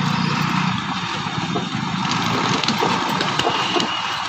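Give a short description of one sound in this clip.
A truck engine rumbles as it rolls closer.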